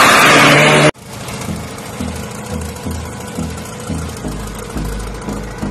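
An idling dragster engine rumbles and pops nearby in a steady rhythm.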